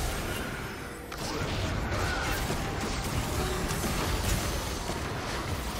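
Magic blasts and spell effects whoosh and crackle in a game fight.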